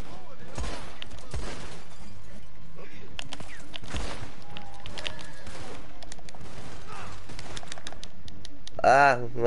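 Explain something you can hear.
Gunshots fire in rapid bursts.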